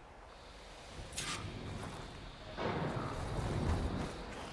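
A waterfall rushes in the distance.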